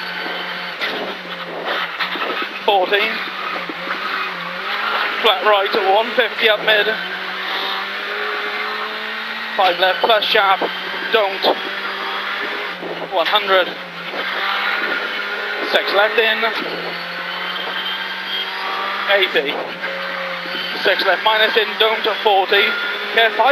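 A car engine drones steadily from inside the car.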